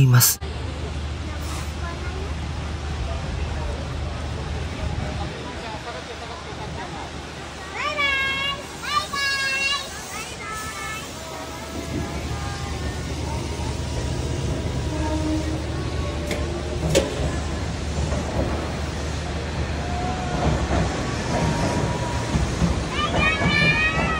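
A train rumbles slowly along the track close by.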